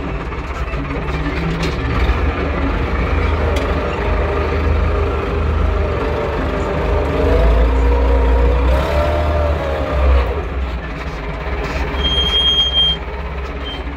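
A tractor's tiller churns and rattles through soil.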